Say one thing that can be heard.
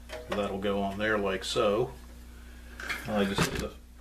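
A plastic cover clicks into place on a metal case.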